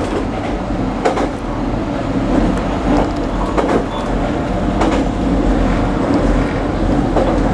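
An electric train runs at speed, heard from inside the cab with a steady rumble.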